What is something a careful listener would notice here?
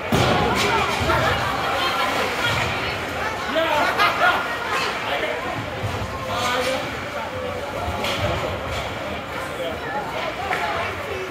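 Skates scrape and hiss across ice in an echoing rink.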